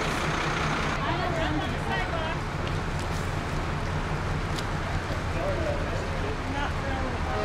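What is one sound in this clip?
A group of women and men cheer and call out outdoors.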